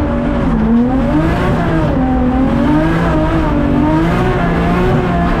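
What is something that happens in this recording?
A car engine roars loudly from inside the cabin, its pitch rising and falling as it revs.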